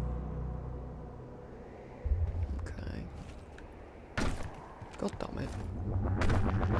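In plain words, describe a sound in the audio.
A deep electronic hum throbs steadily.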